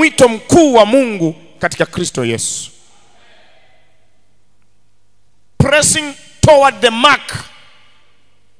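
A man speaks with animation through a microphone, echoing slightly.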